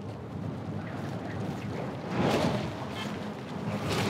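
Web lines thwip as they shoot out.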